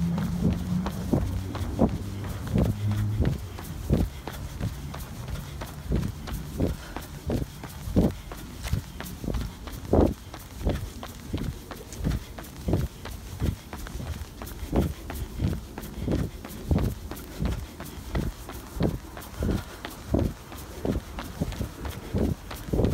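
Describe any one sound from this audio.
Footsteps thump steadily and quickly on asphalt outdoors.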